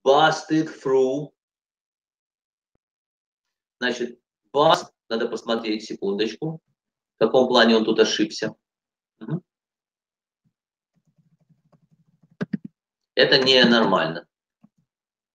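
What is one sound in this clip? A middle-aged man speaks calmly in short phrases through an online call.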